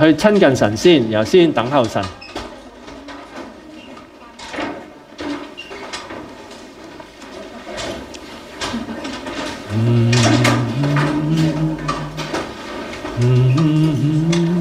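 An elderly man speaks calmly into a microphone through a loudspeaker.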